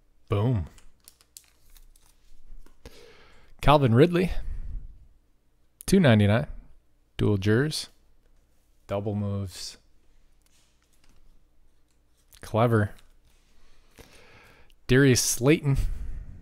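Trading cards rustle and slide in hands.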